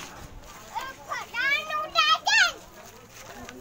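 A small child squeals excitedly.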